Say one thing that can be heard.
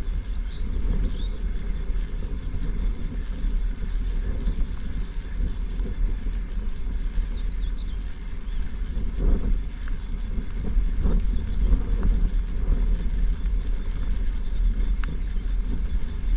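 Tyres roll over a gravel path.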